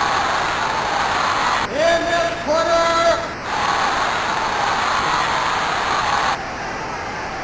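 A crowd cheers and roars.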